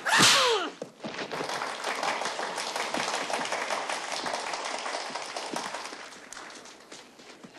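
A crowd of men cheers and shouts in a steady roar outdoors.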